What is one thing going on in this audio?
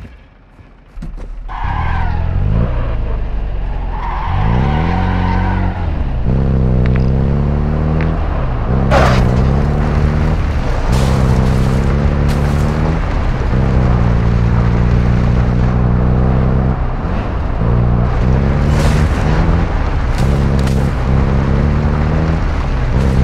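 A truck engine starts and roars, revving up and down as it drives.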